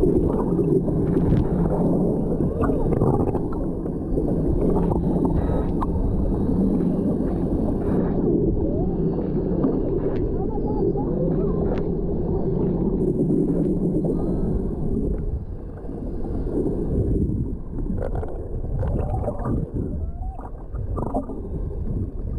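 Water rushes and rumbles underwater.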